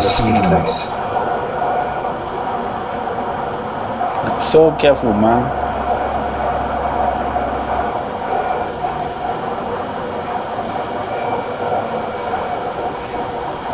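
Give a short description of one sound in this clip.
A diesel truck engine drones while cruising on a highway.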